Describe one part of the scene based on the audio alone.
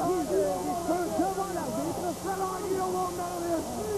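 A man shouts loudly and angrily close by.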